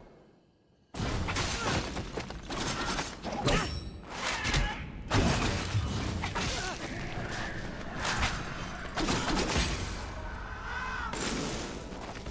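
Swords clash and slash in quick, sharp strikes.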